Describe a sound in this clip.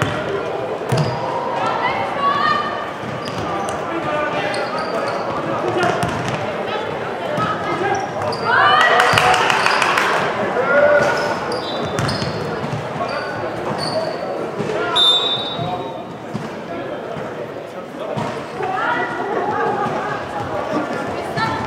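Young women shout and call out to each other across a large echoing hall.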